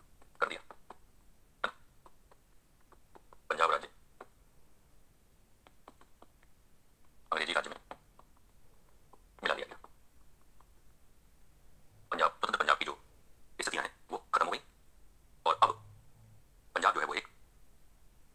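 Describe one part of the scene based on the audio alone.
A man speaks in short bursts, like a teacher explaining.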